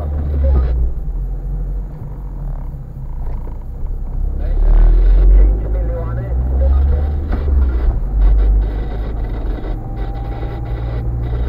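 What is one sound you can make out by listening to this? Tyres roll and hiss on a wet road.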